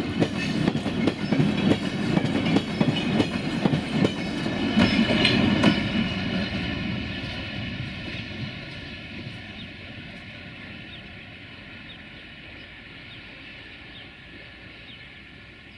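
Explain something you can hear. A freight train rolls away and fades.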